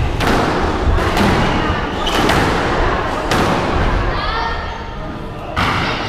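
A squash ball smacks sharply against the walls of an echoing court.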